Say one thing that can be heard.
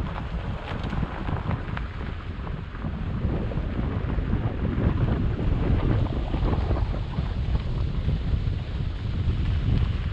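Wind buffets loudly past a car window.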